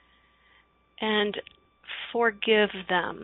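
A woman speaks clearly and warmly into a microphone.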